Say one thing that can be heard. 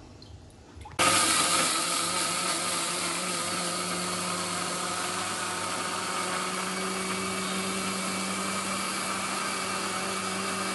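An electric mixer grinder whirs loudly and steadily.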